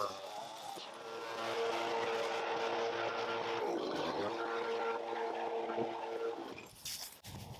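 A leaf blower roars steadily.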